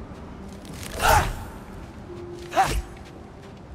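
An axe clangs against metal.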